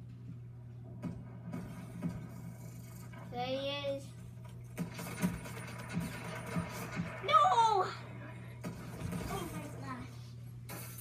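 Video game gunfire plays from a television.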